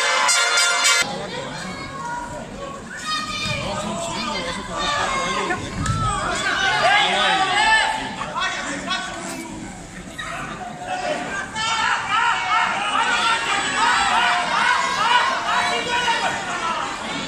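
A crowd cheers and shouts in a large echoing arena.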